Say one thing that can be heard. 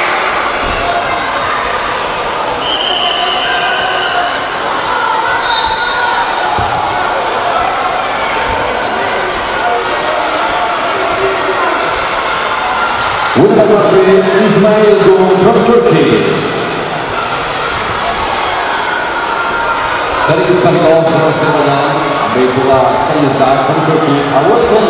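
A crowd of spectators murmurs and chatters in an echoing hall.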